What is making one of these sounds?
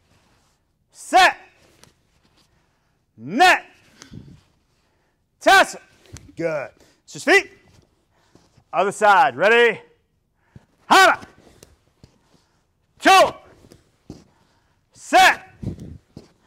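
A middle-aged man shouts sharp, loud calls one at a time in an echoing room.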